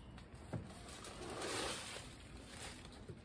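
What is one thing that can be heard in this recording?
Soil and plants rustle as a woman handles a tray.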